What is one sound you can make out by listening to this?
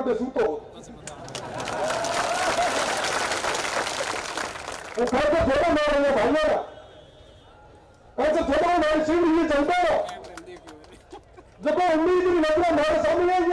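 A young man speaks forcefully into a microphone over loudspeakers, in bursts with pauses.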